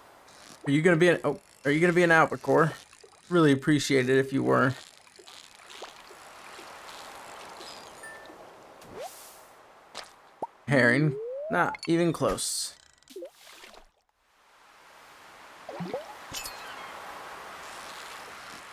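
A fishing reel whirs as a line is wound in.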